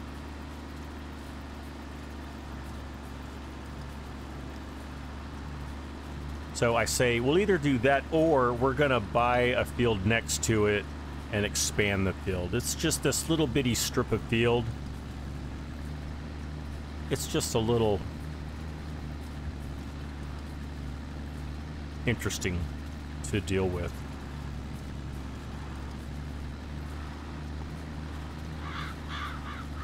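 A tractor engine hums steadily at a low pitch.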